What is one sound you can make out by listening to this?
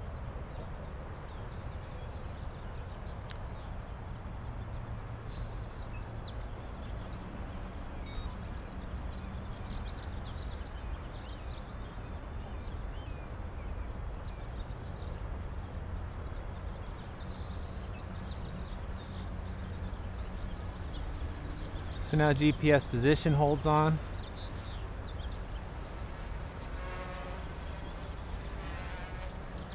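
A small drone buzzes steadily overhead.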